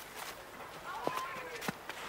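A boy's footsteps crunch on dry forest ground.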